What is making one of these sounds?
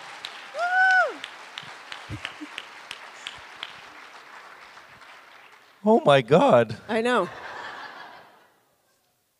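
An audience claps and applauds in a large hall.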